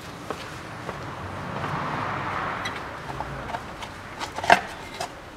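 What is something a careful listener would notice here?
Metal engine parts click and tick as a crankshaft is turned slowly.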